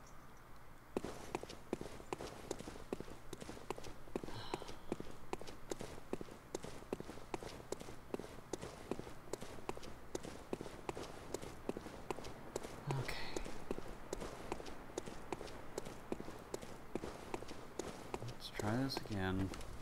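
Footsteps crunch and clatter quickly on stone and gravel.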